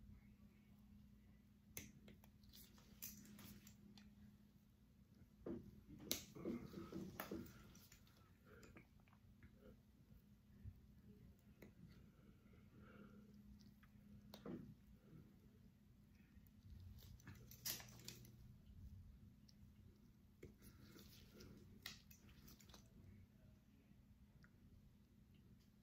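Nail clippers snip through thick toenails with sharp clicks.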